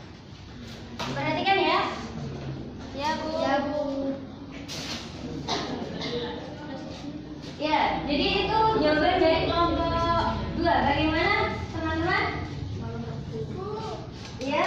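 A young woman speaks up close in a room, with animation.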